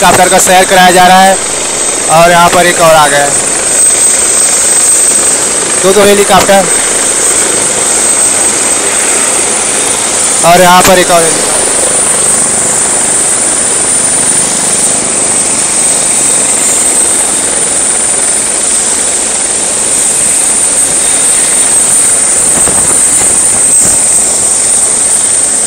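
A helicopter's rotor whirs loudly outdoors.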